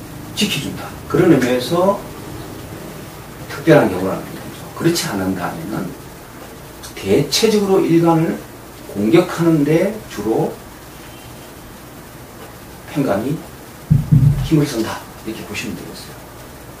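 A middle-aged man speaks calmly and close by, in short phrases with pauses.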